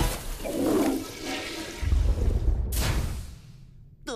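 A toilet flushes with a loud rushing whoosh.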